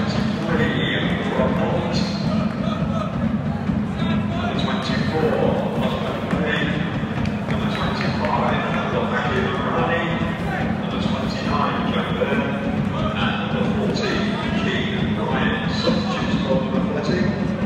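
A stadium crowd murmurs and chatters steadily all around.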